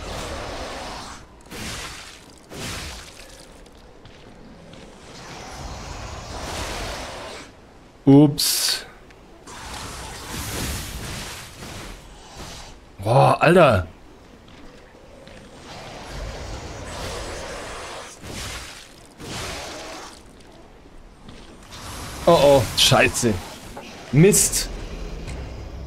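Blades clash and slash in a fight.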